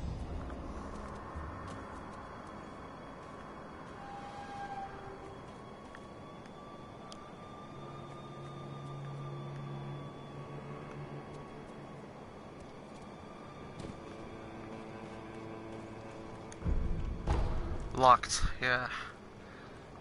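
Footsteps pad softly over grass and earth.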